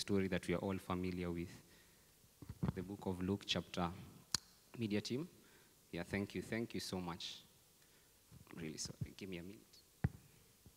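A young man speaks calmly into a microphone in a large echoing room.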